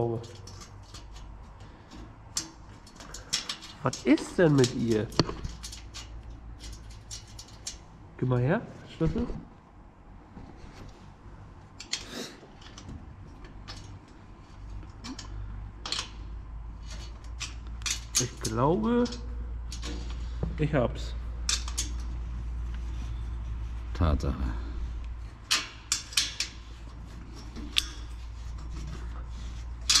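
Metal tools click and scrape against a metal grille.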